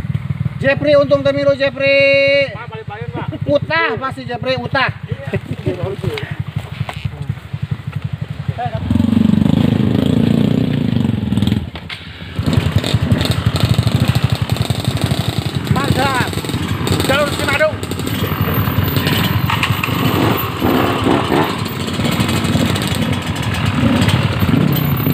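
A dirt bike engine putters and revs loudly nearby.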